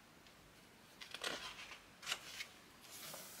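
A book page is turned with a soft paper rustle.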